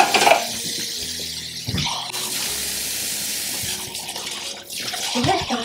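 Tap water runs and splashes into a sink.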